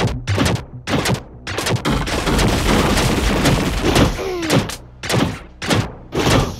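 Punches land with sharp, heavy thuds in quick succession.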